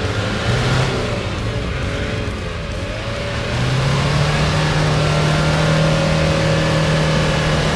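An off-road engine revs hard and grows louder from about halfway through.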